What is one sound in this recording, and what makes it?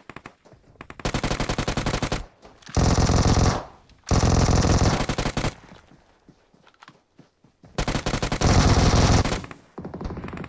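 A rifle fires rapid bursts of gunshots nearby.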